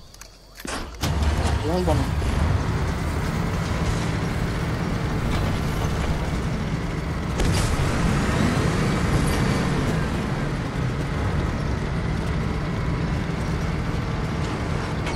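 A heavy vehicle's engine rumbles steadily.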